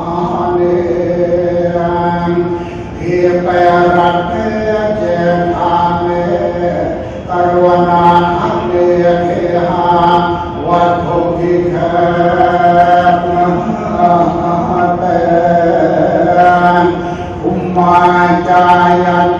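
A group of men and women chant a prayer together in a steady, droning unison.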